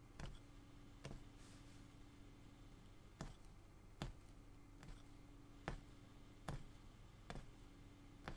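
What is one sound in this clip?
A punch needle pokes through taut cloth with regular soft thuds.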